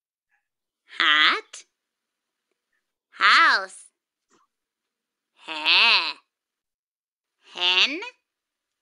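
A young girl says single words slowly, one at a time, over an online call.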